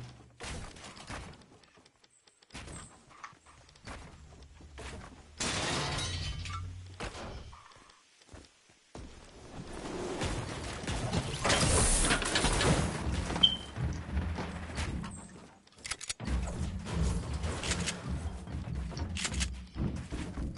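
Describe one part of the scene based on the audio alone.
Footsteps thud on wooden floors.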